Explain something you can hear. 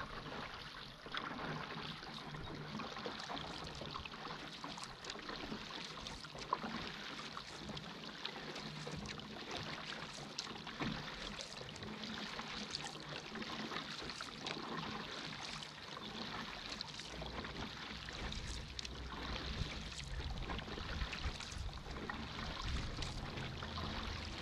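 Water splashes and churns in a boat's wake.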